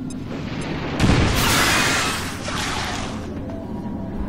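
A loud energy blast whooshes and crackles, then fades.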